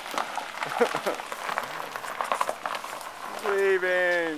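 Tyres crunch and crackle over gravel as a car turns.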